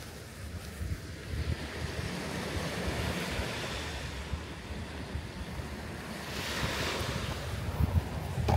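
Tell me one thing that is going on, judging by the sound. Small waves wash gently onto a sandy beach.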